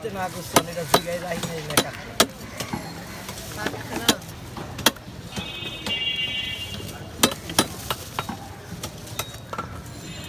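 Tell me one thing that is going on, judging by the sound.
Wet fish slaps and thuds as it is handled and cut.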